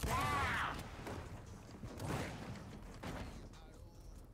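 Gunfire rings out in short bursts.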